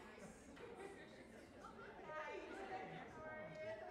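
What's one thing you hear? A woman speaks in a large echoing hall.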